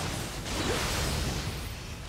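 A magical blast crackles and bursts.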